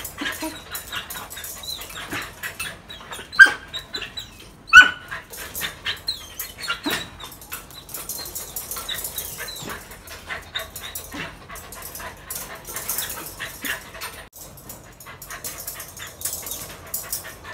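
A dog whines and yelps excitedly.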